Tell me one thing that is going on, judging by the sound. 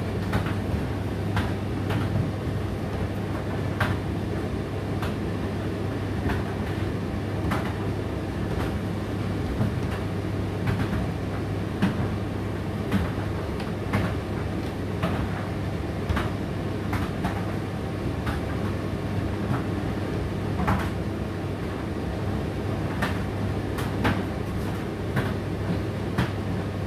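A condenser tumble dryer runs with a steady low hum.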